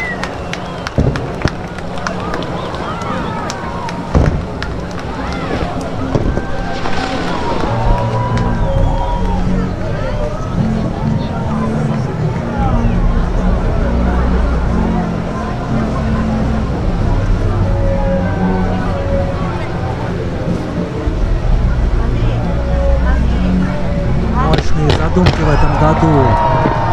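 Fireworks pop and crackle over the water.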